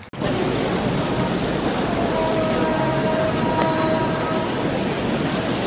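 Flags flap in the wind.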